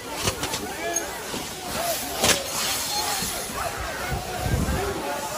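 A crowd of men and women shouts loudly outdoors.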